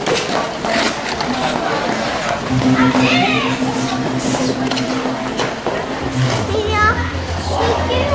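A crowd of children chatters and shouts nearby in a large echoing hall.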